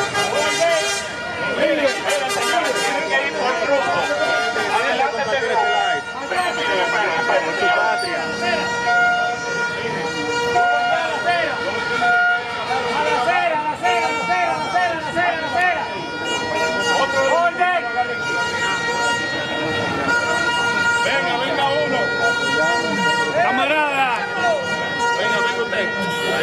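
A crowd of men and women chants and shouts outdoors.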